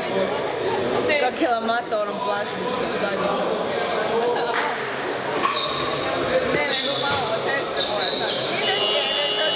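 Many men talk and call out at once in a large echoing hall.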